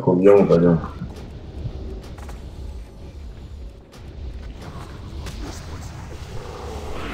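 Magic spells crackle and whoosh in a noisy battle.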